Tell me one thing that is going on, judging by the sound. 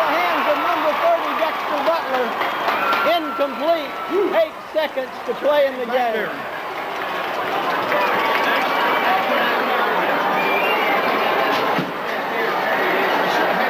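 A large crowd cheers and shouts in an open stadium.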